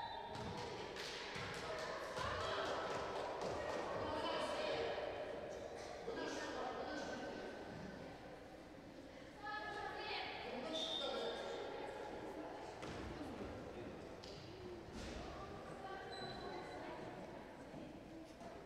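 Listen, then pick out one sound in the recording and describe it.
Sneakers squeak on a hardwood court in a large echoing hall.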